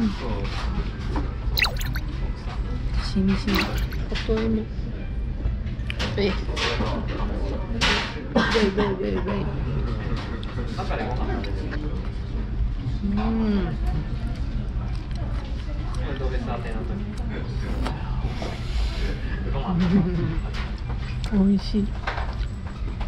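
A young woman speaks softly and cheerfully close by.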